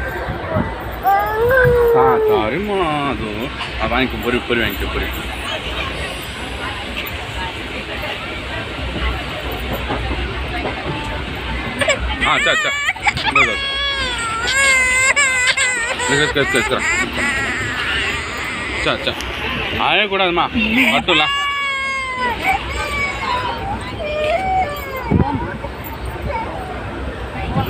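Several women chatter loudly close by in a crowd.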